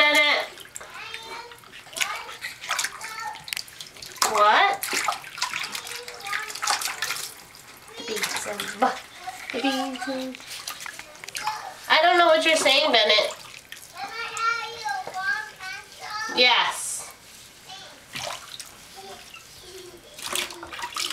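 A woman talks softly and playfully to a baby close by.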